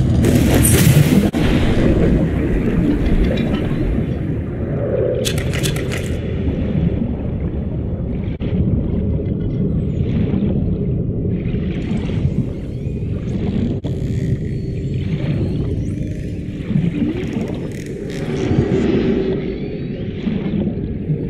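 Water rumbles and bubbles in a low, steady underwater murmur.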